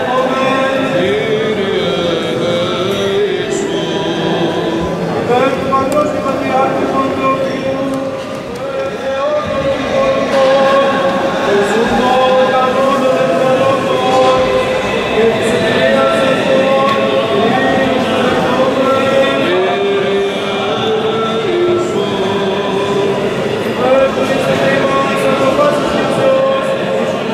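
A choir of men chants in unison, echoing through a large stone hall.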